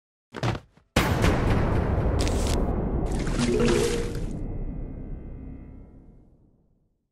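A game sound effect swells loudly, then fades away.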